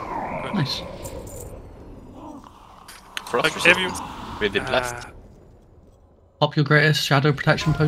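Spells and weapons clash in a battle.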